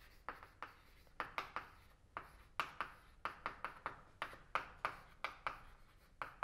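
Chalk taps and scratches sharply on a board.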